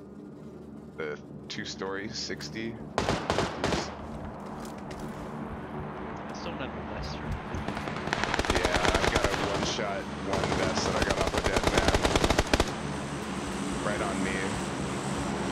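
An adult man talks into a headset microphone.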